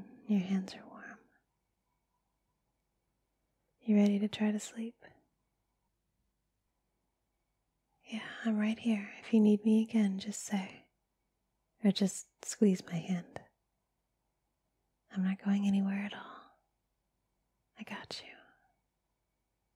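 A young woman talks softly, close to a microphone.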